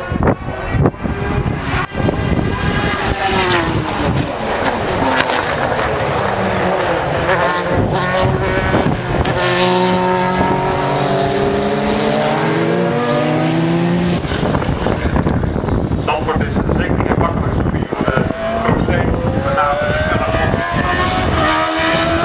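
Racing car engines roar loudly, rising and falling in pitch as they speed past.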